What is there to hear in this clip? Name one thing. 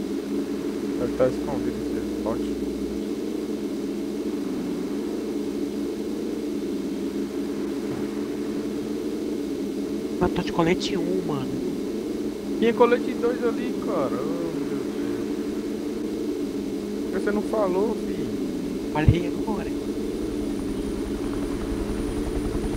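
A car engine drones steadily as the car drives over rough ground.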